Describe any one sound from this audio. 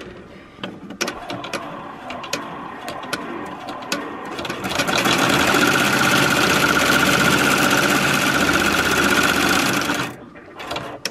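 An embroidery machine hums and rattles steadily as its needle stitches rapidly.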